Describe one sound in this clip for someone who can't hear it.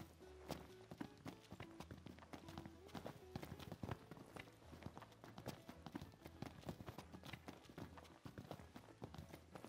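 Footsteps tap quickly on a stone pavement.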